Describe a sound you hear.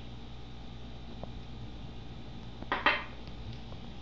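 A glass bottle is set down on a hard surface with a light knock.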